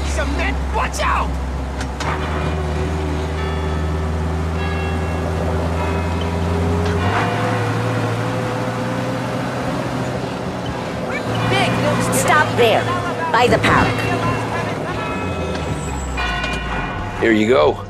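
An old car engine hums steadily while driving.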